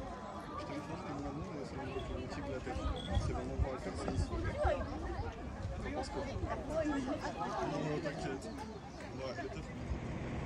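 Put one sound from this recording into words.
A crowd of people chatters and talks outdoors nearby.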